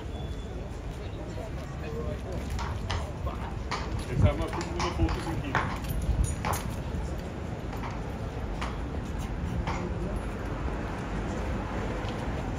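A horse's hooves clop as it shifts on stone.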